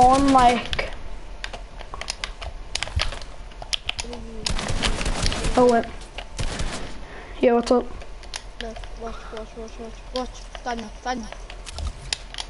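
Quick clicks and thuds of building in a video game rattle throughout.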